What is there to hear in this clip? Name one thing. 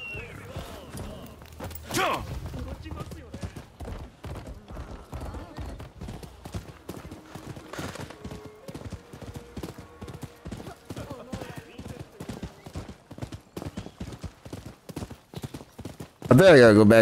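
A horse gallops with rapid hoofbeats.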